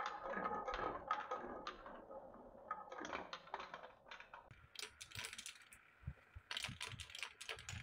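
Glass marbles roll and rumble along wooden tracks.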